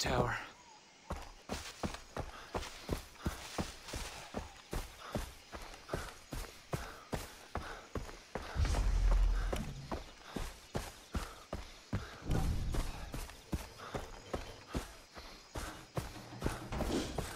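Footsteps crunch steadily through grass and brush.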